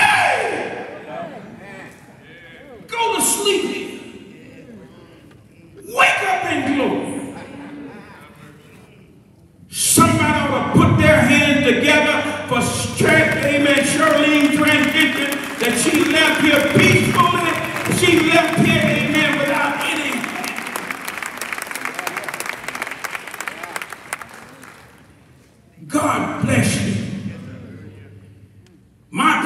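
An elderly man preaches fervently through a microphone in an echoing hall.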